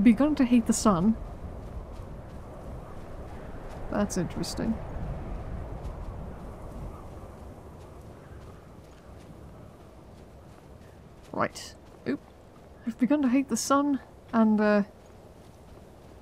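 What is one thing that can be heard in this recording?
Footsteps crunch through snow at a running pace.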